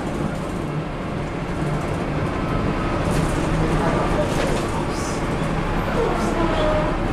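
A bus rattles and creaks over the road.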